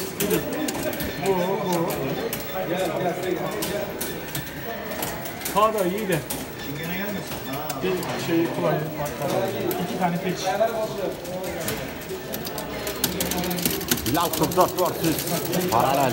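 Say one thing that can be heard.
Arcade game music and effects play loudly from a cabinet speaker.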